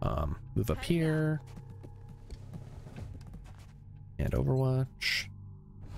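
Short electronic interface tones chime.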